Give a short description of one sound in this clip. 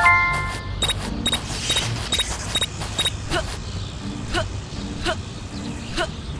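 Footsteps patter steadily on grass.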